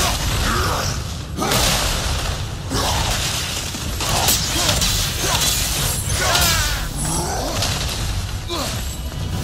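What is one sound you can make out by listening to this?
Heavy stone footsteps thud.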